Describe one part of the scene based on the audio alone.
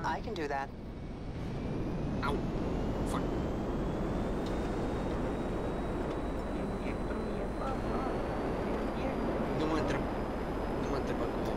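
A jet engine's whine rises in pitch as it speeds up.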